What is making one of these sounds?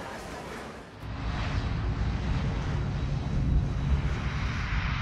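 An aircraft engine roars steadily close by.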